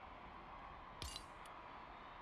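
A menu click sounds once.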